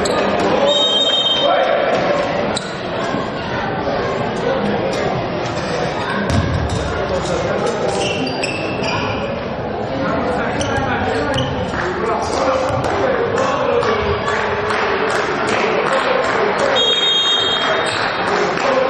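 A referee's whistle blows.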